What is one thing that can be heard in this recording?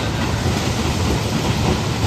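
A wheel loader engine runs nearby.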